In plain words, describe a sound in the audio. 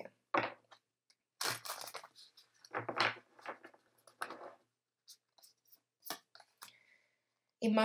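Playing cards rustle and slap as they are shuffled.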